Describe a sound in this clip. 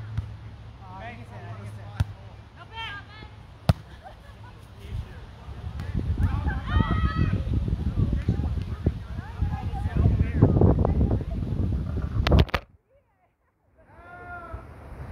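Young men and women call out to each other outdoors during a game.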